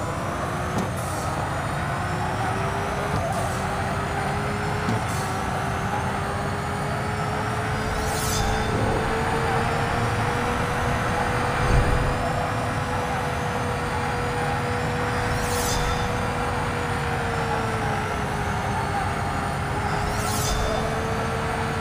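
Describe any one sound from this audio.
Tyres screech as a car drifts around bends.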